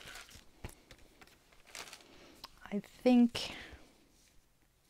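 A sheet of paper slides and rustles under a hand.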